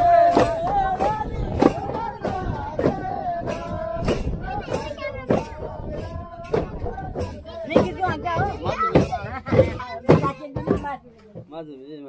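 A man sings loudly nearby.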